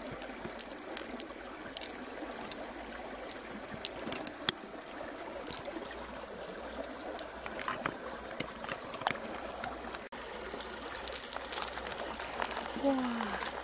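Small beads click together in a hand.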